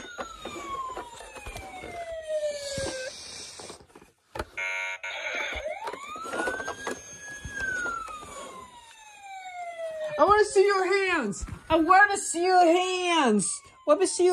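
Plastic toy parts knock and rattle as they are handled.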